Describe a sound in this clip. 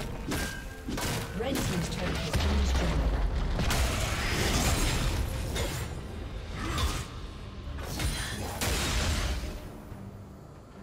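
Spell blasts whoosh and crash in a hectic video game battle.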